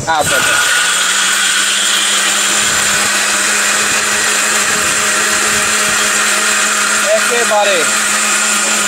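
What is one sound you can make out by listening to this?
A blender motor whirs loudly and steadily.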